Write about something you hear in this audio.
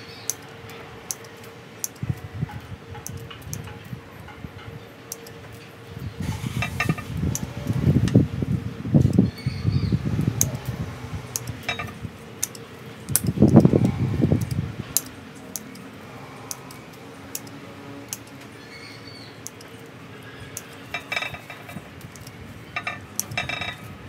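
Pruning shears snip small twigs with sharp clicks.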